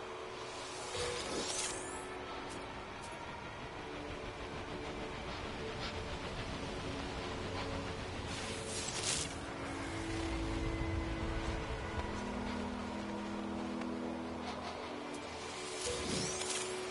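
A short whooshing zap sounds as a plant is harvested.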